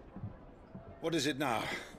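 A young man speaks in a low, calm voice.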